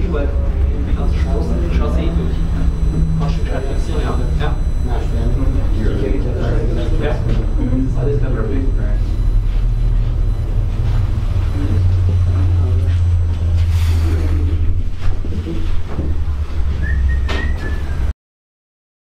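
A cable car cabin creaks and rattles now and then.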